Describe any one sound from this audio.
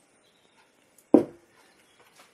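A glass is set down on a counter with a knock.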